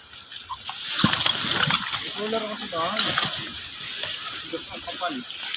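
Wet fish slap and slide out of a box onto hard ground.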